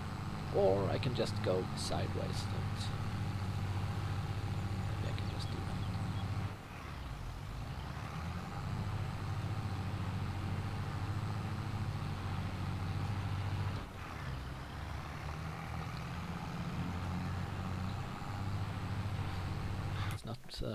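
A tractor engine hums steadily as it drives.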